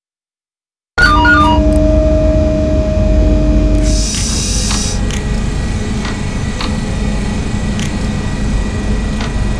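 A train's electric motors hum steadily as it rolls along the rails.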